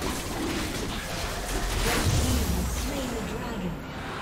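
Magic blasts whoosh and crackle in a video game fight.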